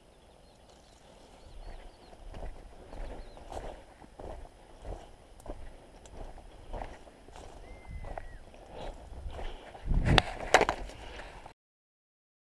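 Footsteps crunch through dry leaves and brush.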